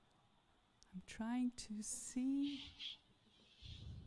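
A woman speaks brightly into a microphone.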